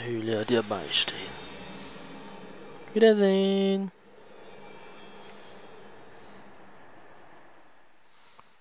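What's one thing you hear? A shimmering magical chime rings out and fades away.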